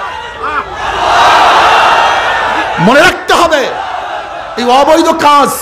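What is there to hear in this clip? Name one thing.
A man preaches forcefully into a microphone over a loudspeaker, outdoors.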